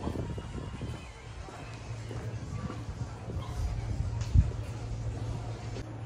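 Footsteps tap on paving stones.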